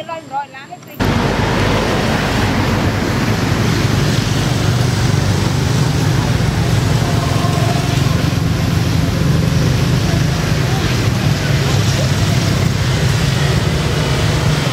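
Motorbikes and cars hum past on a nearby road.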